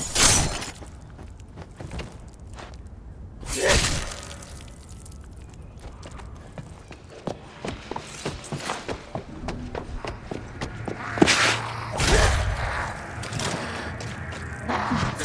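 A blade hits flesh with a wet thud.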